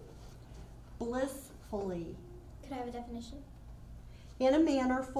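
A young girl speaks into a microphone.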